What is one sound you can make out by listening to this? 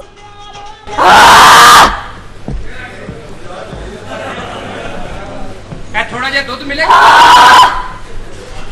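An audience laughs and cheers.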